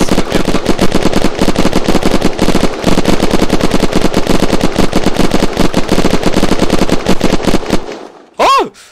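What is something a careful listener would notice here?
A rifle fires in rapid, continuous bursts.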